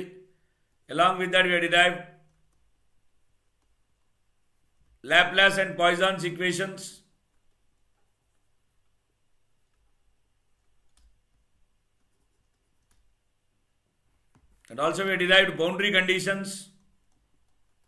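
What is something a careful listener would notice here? A man speaks calmly and clearly into a close microphone, in short bursts with long pauses.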